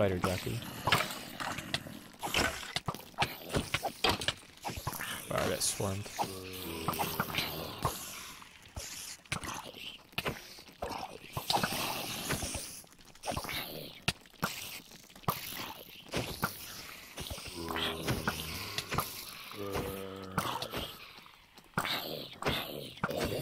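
Sword blows land on monsters with short, dull thuds.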